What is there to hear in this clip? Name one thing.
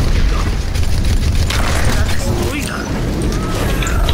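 Gunfire crackles in rapid bursts from a video game.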